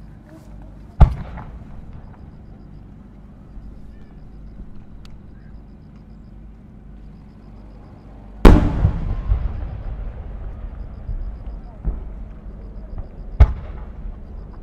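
Fireworks explode with loud, sharp booms that rumble and echo away.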